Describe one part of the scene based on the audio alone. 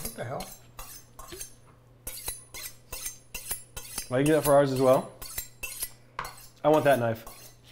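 A knife taps and clicks on a cutting board.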